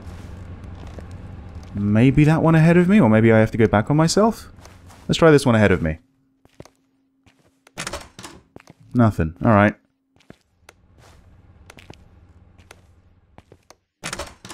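Footsteps tread on a wooden floor.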